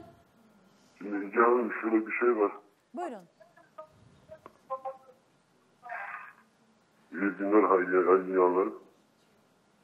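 A woman speaks calmly over a phone line.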